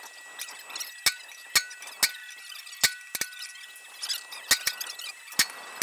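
A hammer strikes hot metal on an anvil with sharp ringing clangs.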